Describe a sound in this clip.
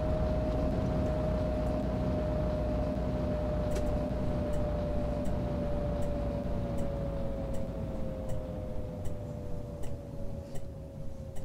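A bus engine hums steadily, its pitch slowly dropping.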